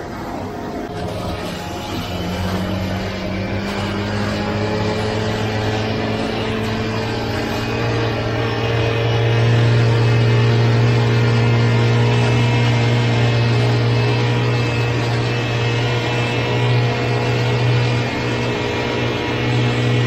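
A small petrol engine drones steadily up close, growing louder.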